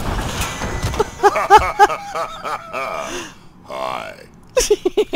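A man chuckles in a deep, gravelly voice.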